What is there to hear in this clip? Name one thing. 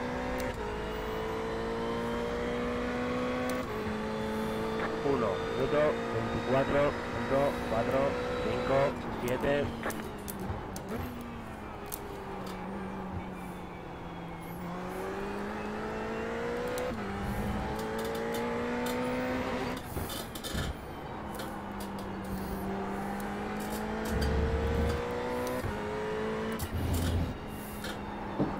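A race car engine roars and shifts up and down through the gears.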